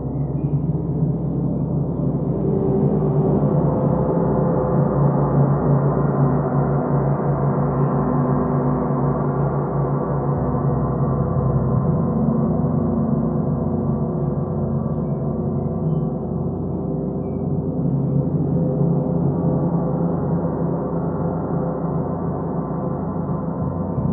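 A large gong is rubbed with a mallet and hums in a deep, swelling, shimmering drone.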